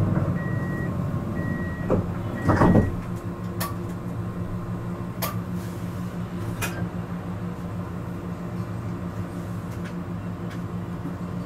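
A tram's motor hums steadily while standing still.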